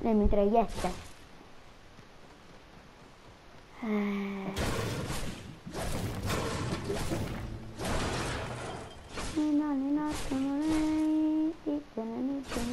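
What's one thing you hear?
A pickaxe strikes hard surfaces with loud thuds.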